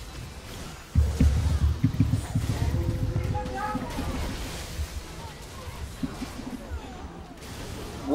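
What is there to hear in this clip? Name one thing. Game combat sounds of clashing blows and spell blasts ring out.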